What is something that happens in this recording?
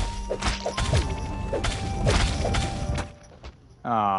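Video game combat sounds clash and hit rapidly.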